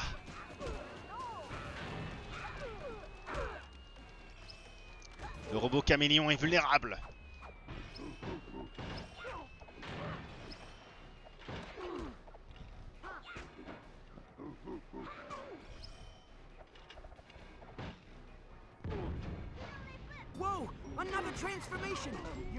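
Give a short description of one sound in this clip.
Cartoonish video game zaps and clatters ring out in quick bursts.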